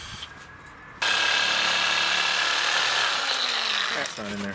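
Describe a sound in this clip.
A reciprocating saw buzzes loudly and steadily.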